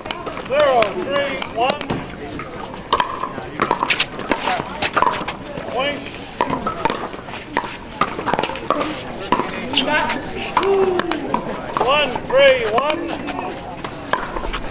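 Paddles pop against a plastic ball in a quick rally outdoors.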